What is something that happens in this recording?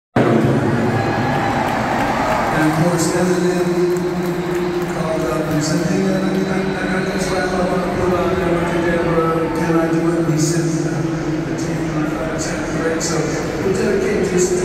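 A rock band plays loudly through big loudspeakers in a large open arena.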